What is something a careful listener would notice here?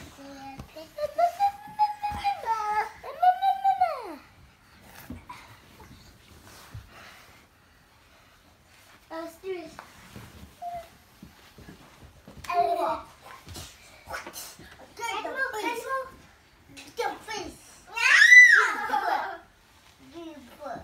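Young children squeal and shout playfully nearby.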